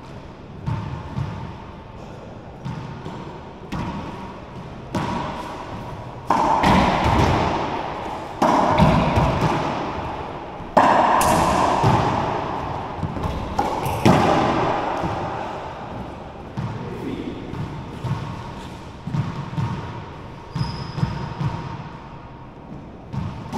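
A racquetball smacks hard against the walls, echoing around a bare court.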